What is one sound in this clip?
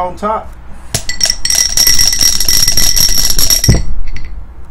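Dice rattle loudly inside a shaken glass.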